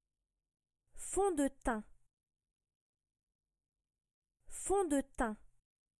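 A woman's recorded voice clearly pronounces a short phrase twice, heard through a computer speaker.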